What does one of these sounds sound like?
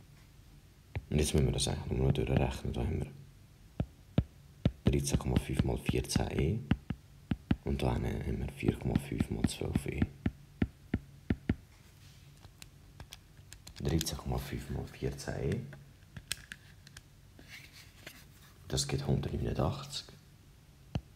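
A young man talks calmly and explains into a close microphone, with pauses.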